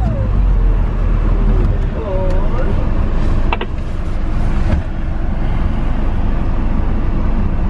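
A vehicle engine rumbles low and steadily as it drives slowly over rough ground.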